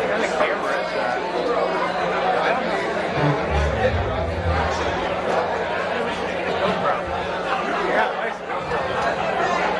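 A rock band plays loudly with electric guitars strumming.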